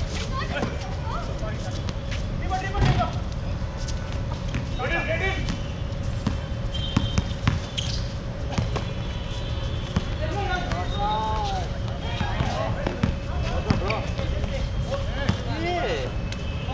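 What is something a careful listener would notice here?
Young men call out to each other across an outdoor court.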